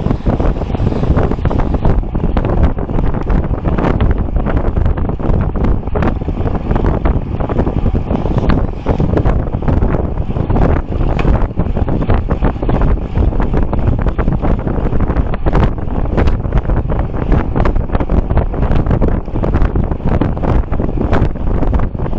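Strong wind roars steadily past a fast-moving bicycle.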